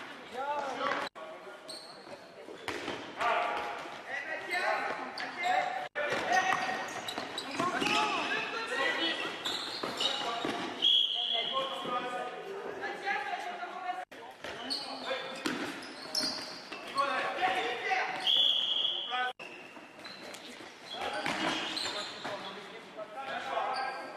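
Sports shoes squeak sharply on a hall floor.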